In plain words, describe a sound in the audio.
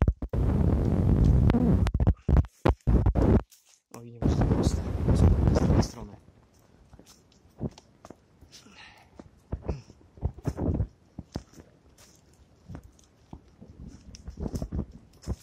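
Footsteps rustle and crunch through fallen leaves.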